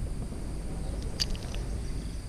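A fishing reel handle clicks shut.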